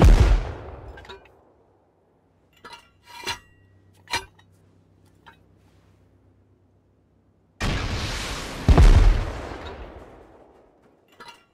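A rocket explodes with a deep, rumbling boom.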